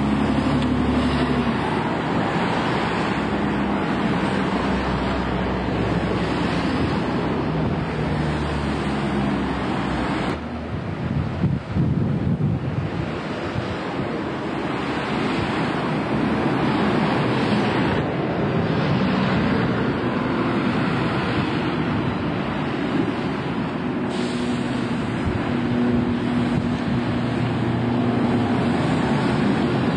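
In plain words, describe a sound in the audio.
Traffic hums steadily outdoors.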